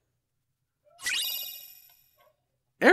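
A bright chime rings and fades.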